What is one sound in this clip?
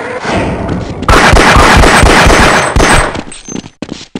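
A pistol fires a rapid burst of shots.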